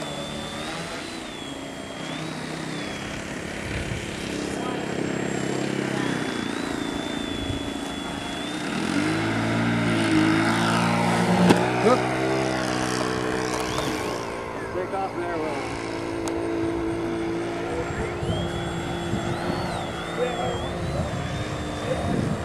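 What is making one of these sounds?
A small electric propeller motor whines overhead, rising and falling in pitch.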